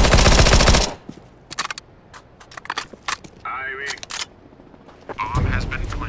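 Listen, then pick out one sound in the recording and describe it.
A submachine gun is reloaded with metallic clicks.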